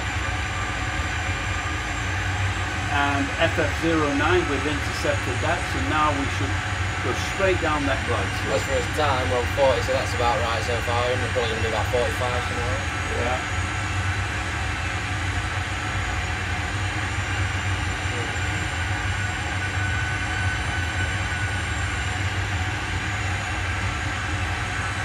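A steady low engine hum drones throughout.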